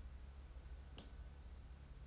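A tablet is set down with a light knock.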